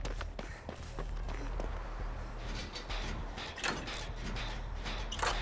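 A generator engine rattles and clanks as it is worked on.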